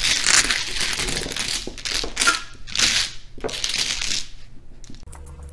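Dominoes slide and clatter across a table.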